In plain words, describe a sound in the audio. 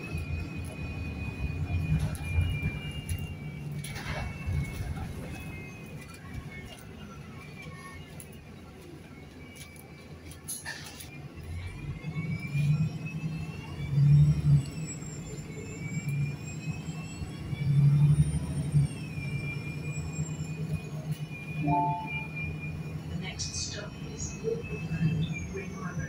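A bus engine rumbles low and steady, rising and falling in pitch as the bus drives.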